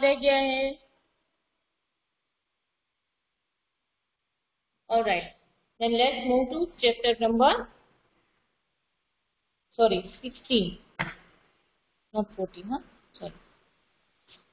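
A woman speaks calmly and close.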